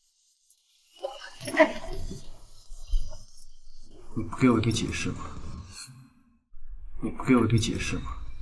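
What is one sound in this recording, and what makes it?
A young man speaks sharply, demanding an answer.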